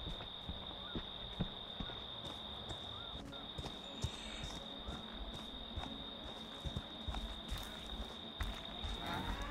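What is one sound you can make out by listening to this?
Heavy footsteps crunch slowly over dry leaves and twigs.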